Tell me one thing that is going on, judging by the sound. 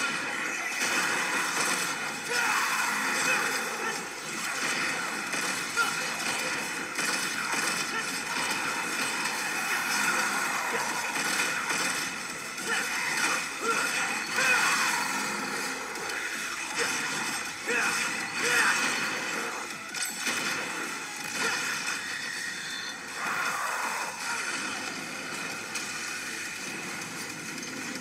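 Game sound effects and music play from a tablet's speaker.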